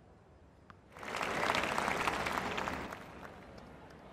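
A crowd applauds briefly.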